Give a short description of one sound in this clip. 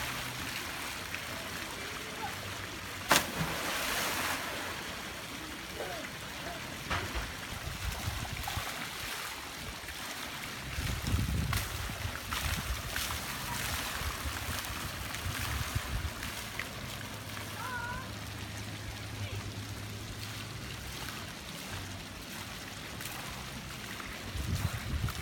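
Water pours steadily over a pool edge.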